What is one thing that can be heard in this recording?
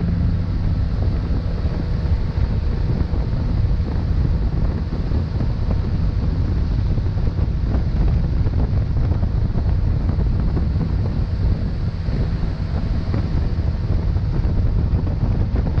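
A boat engine roars steadily.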